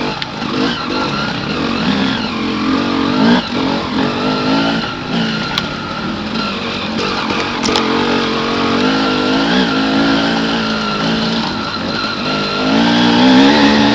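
A dirt bike engine revs loudly close by, rising and falling in pitch.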